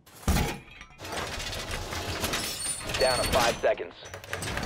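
Metal panels clank and scrape as a wall is reinforced.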